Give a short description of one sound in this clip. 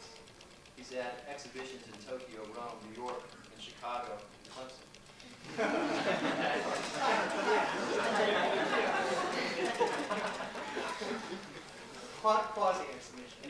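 A man speaks calmly to an audience in an echoing hall.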